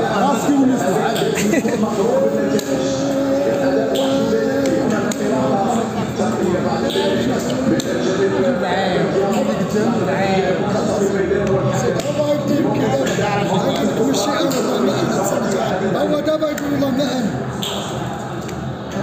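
Several men talk with animation nearby.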